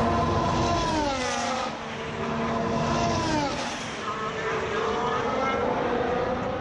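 Racing car engines roar past loudly, their pitch dropping as they go by.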